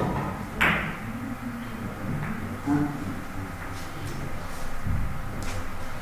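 Billiard balls click against each other and thud off the cushions.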